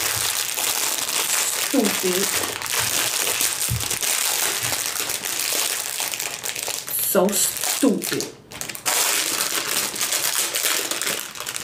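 A plastic bag crinkles and rustles close by.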